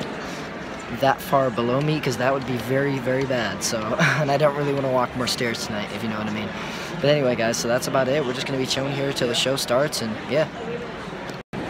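A young man talks close to the microphone with excitement.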